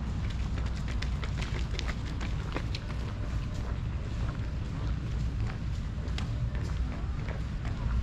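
A jogger's footsteps pat on pavement nearby.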